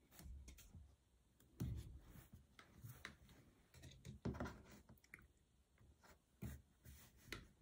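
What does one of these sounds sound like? A plastic ruler slides and taps on a cutting mat.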